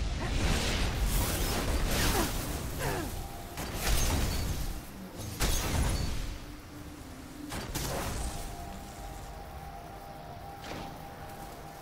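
A glowing blade whooshes through the air in swift, repeated slashes.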